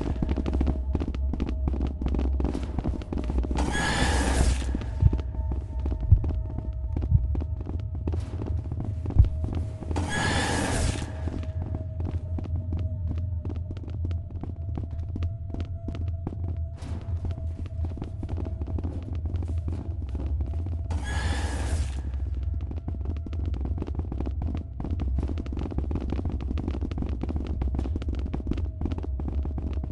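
Quick footsteps tap along a hard floor.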